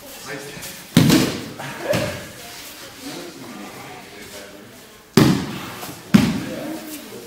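Bodies thud heavily onto a mat in an echoing hall.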